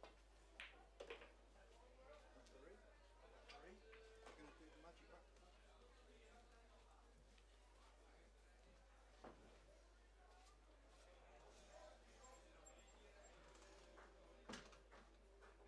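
Pool balls click sharply against each other.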